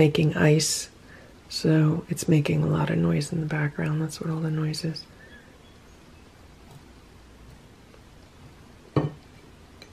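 A knife cuts softly through spongy cake.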